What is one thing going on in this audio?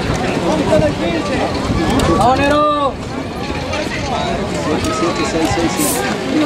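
Several men call out and shout to each other outdoors.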